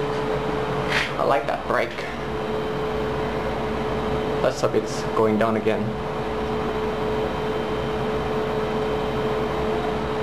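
An electric motor hums steadily with a low drone.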